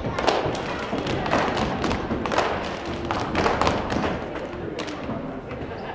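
Sharp claps ring out and echo in a large hall.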